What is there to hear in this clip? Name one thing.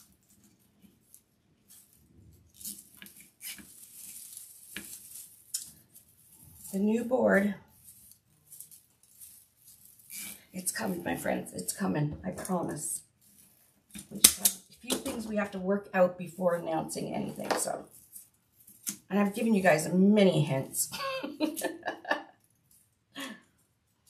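Stiff burlap rustles and crinkles as hands scrunch it.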